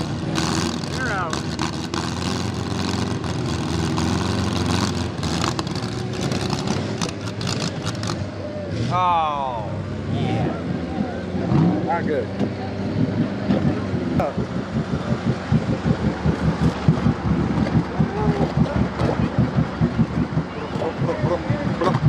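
Mud splashes and squelches under spinning tyres.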